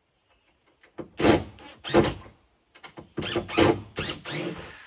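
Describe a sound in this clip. A man scrapes at a wooden floor in short, rough strokes.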